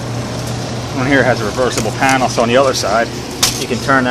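A hand rattles and scrapes thin metal fins.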